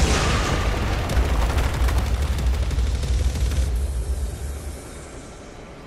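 Glass shatters with a loud, crashing roar.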